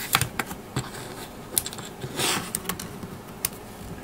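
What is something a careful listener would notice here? Fingers rub and brush against a microphone.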